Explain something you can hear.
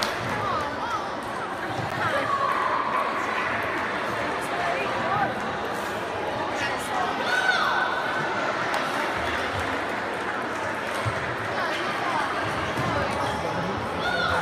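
Many voices of children and adults chatter in a large echoing hall.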